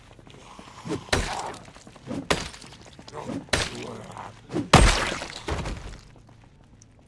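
Heavy blows thud against a body in quick succession.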